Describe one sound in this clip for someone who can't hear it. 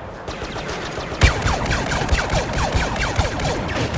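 Blaster shots fire in quick bursts.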